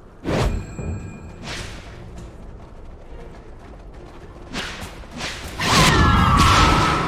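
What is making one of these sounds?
Magic spells whoosh and crackle in a game fight.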